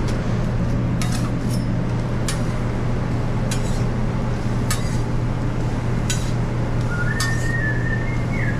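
A metal spatula clinks and scrapes against a hot griddle.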